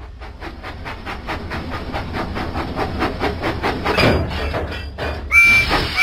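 A small steam engine puffs as it rolls along the track.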